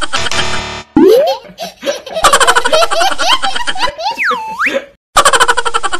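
A baby laughs.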